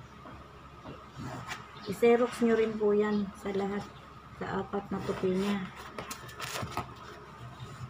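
Stiff paper rustles as it is lifted and folded.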